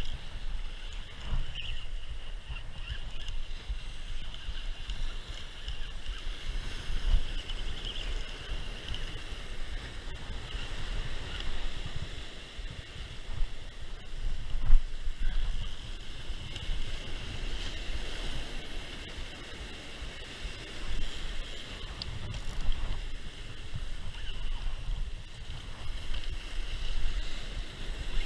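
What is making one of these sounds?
Waves crash and wash against rocks.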